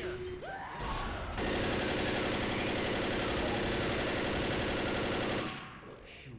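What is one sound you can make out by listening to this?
A rifle fires in rapid, continuous bursts close by.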